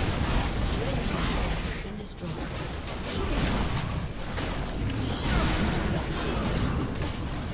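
Magic spells crackle and whoosh in a fast video game battle.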